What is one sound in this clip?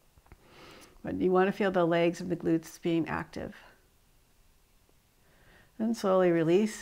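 A woman speaks calmly and softly into a close microphone.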